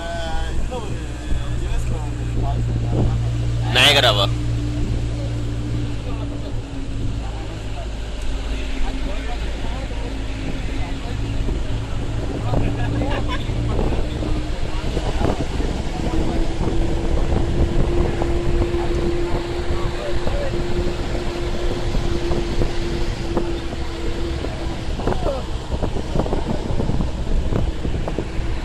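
A vehicle's engine drones steadily from inside.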